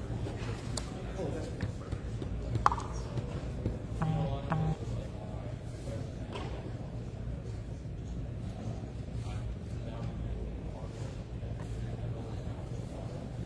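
Game pieces tap lightly on a tabletop.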